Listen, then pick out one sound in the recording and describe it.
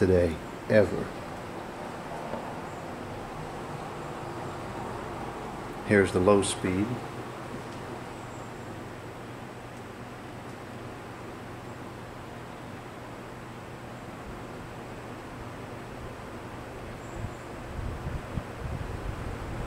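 A window fan whirs steadily.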